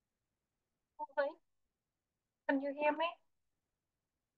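A young woman speaks briefly and calmly into a headset microphone, heard as on an online call.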